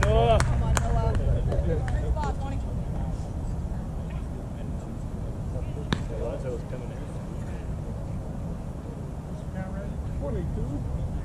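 Wind blows across an open outdoor space.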